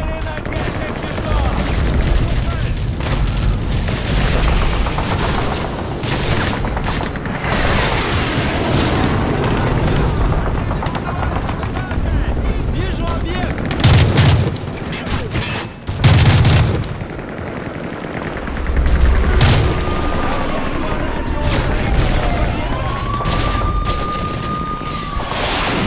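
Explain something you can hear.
Gunfire crackles and pops at a distance.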